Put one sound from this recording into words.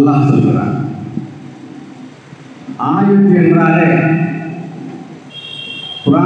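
An elderly man speaks slowly and earnestly into a microphone, heard through a loudspeaker.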